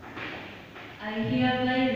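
A young woman speaks into a microphone, heard over a loudspeaker.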